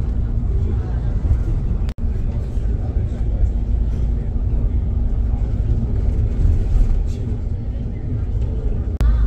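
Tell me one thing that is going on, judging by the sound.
A vehicle's engine hums steadily.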